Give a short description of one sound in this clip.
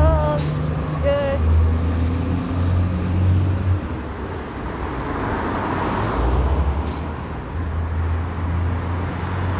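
City traffic rumbles steadily along a street.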